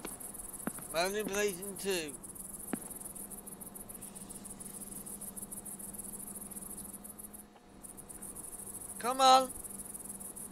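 A young man speaks briefly and with animation into a close microphone.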